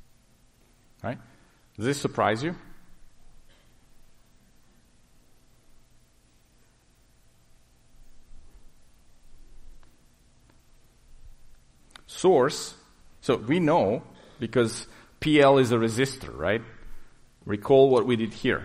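A man speaks through a microphone in short bursts.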